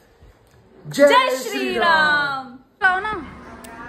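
A young woman laughs and exclaims loudly.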